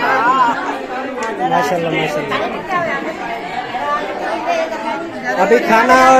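Several women talk and laugh together close by.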